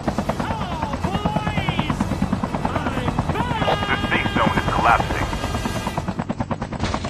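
A helicopter's rotor thuds in a fast, steady beat.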